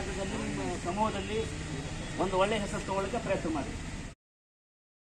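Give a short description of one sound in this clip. A man speaks outdoors, addressing a group in a firm voice.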